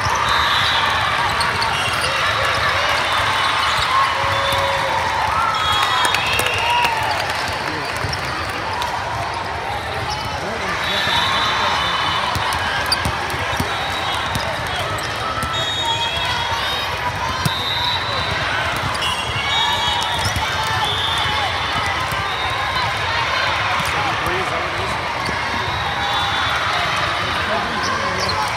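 A crowd of spectators chatters and cheers loudly in a large echoing hall.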